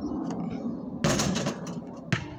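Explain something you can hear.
A basketball hits a backboard and rim with a clang.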